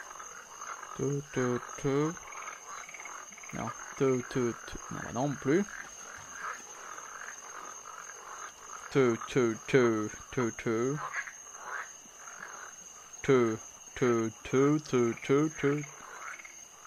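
A man speaks calmly into a nearby microphone, in short bursts.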